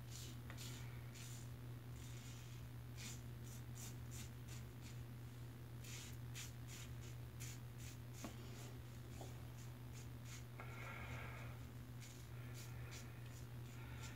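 A razor scrapes through stubble in short, quick strokes, close by.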